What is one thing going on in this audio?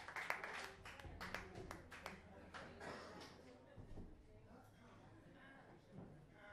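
A keyboard plays along with the band.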